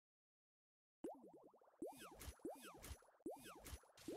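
Bubbly popping sound effects burst in quick succession.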